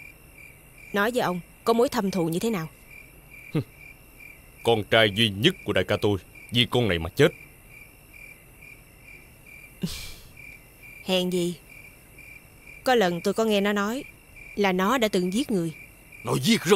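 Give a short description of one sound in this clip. A young woman speaks sharply and with animation.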